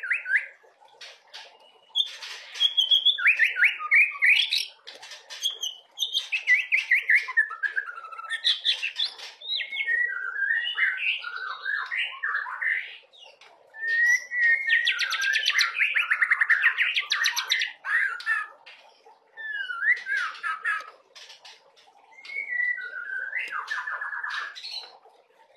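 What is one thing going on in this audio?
A songbird sings close by in long, varied phrases of whistles, trills and chattering notes.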